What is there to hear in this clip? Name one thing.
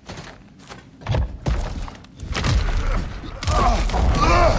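A heavy stone statue grinds as it is pushed.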